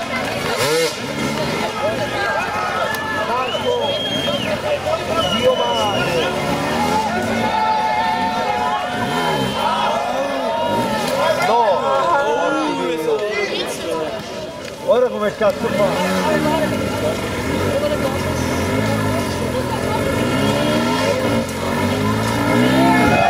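A crowd of people shouts and cheers outdoors.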